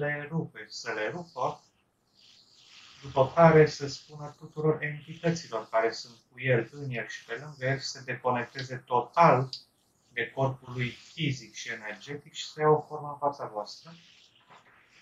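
A young man talks with animation over an online call, heard through a headset microphone.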